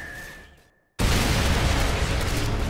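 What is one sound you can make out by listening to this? A distant explosion rumbles and booms.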